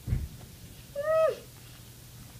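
A young woman gives a short, rising hum.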